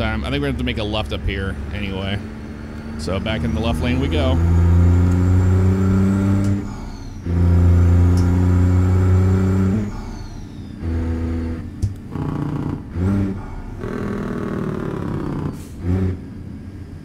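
A truck engine drones and rises in pitch as it accelerates.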